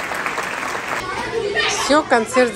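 A child calls out in a high voice nearby.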